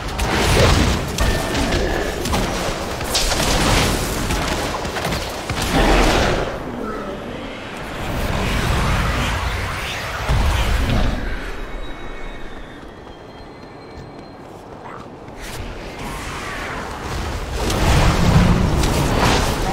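Spell effects crackle and whoosh in quick bursts.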